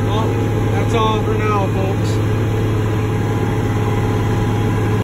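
A tractor engine rumbles steadily up close.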